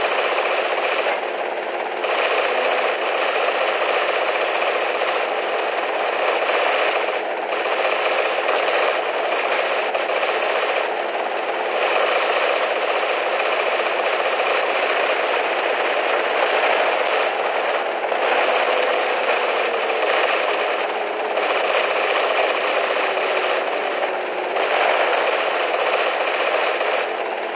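A helicopter's rotor whirs steadily overhead.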